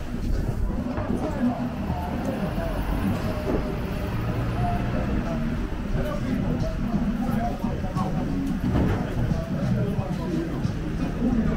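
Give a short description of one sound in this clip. Voices of passers-by murmur along a busy street.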